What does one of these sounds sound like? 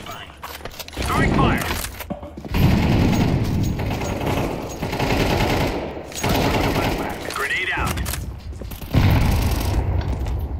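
Gunshots ring out in rapid bursts inside a large echoing hall.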